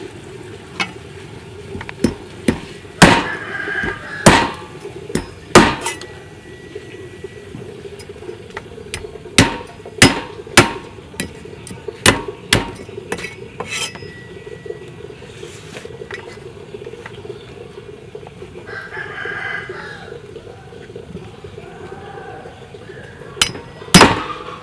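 A cleaver chops sharply into a fish on a wooden block.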